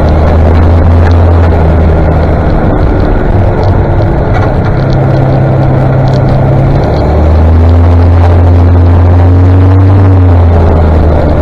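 A motorcycle engine hums steadily, rising and falling in pitch.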